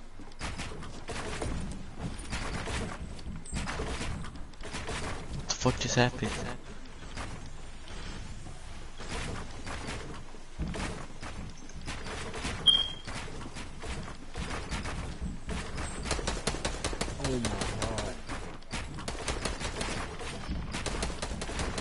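Building pieces snap into place in quick, repeated clacks.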